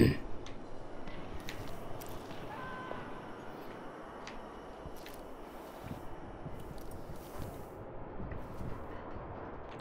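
Footsteps thud on stone stairs.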